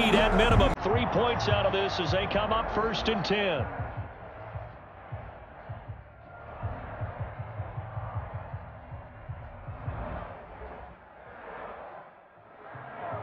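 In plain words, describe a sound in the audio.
A stadium crowd murmurs and roars in a large open arena.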